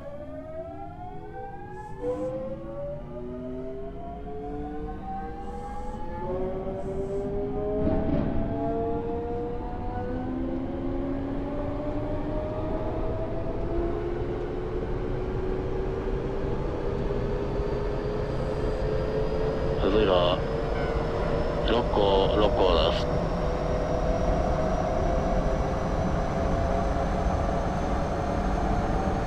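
Train wheels rumble along the rails.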